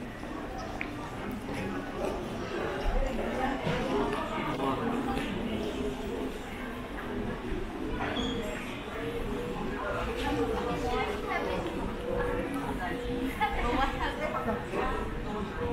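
A crowd murmurs indistinctly nearby.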